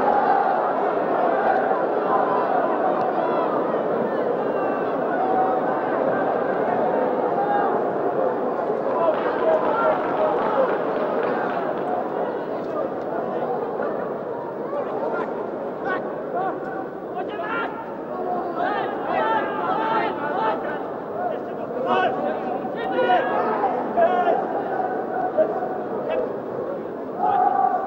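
A large crowd roars and murmurs in a stadium.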